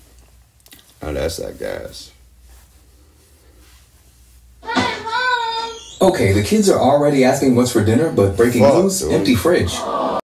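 A young man sings into a microphone close up.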